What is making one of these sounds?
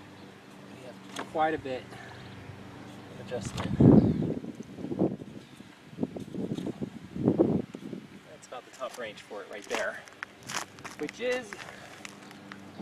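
A young man talks outdoors, close by.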